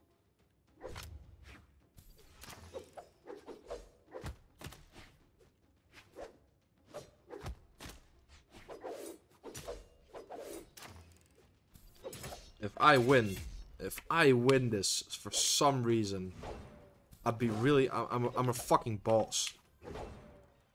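Video game fighters land quick hits with sharp whooshes and thuds.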